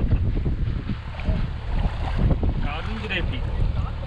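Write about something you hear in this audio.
Water splashes around a man's feet.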